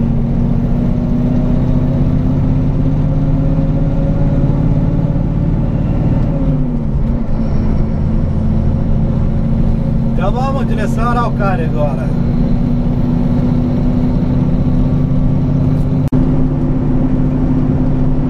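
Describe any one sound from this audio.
A truck engine drones steadily up close.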